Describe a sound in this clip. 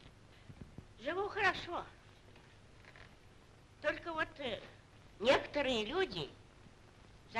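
An elderly woman speaks with emotion nearby.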